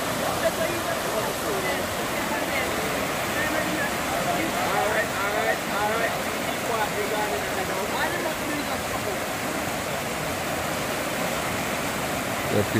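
A fast river rushes and churns over rocks.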